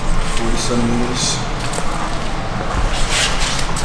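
Footsteps scuff on a wooden floor.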